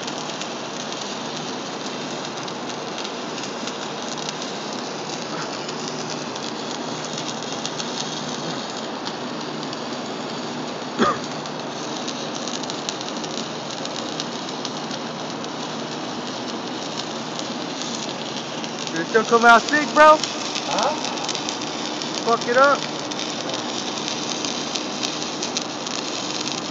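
A welding arc crackles and sizzles steadily close by.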